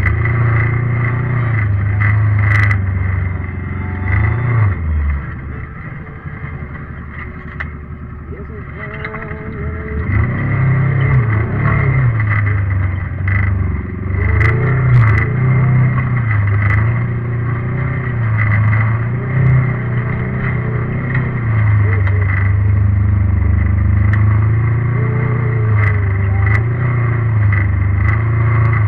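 Tyres crunch and bump over rocky dirt.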